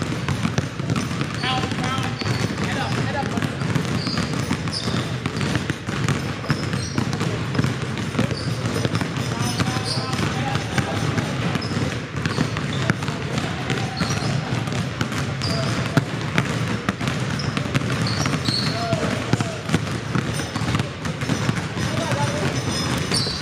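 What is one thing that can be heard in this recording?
Many basketballs bounce rapidly on a hard floor in a large echoing hall.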